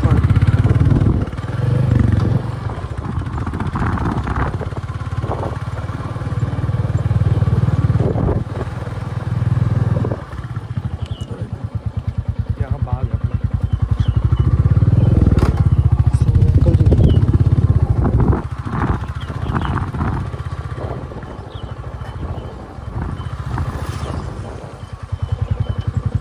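A motorcycle engine chugs steadily close by.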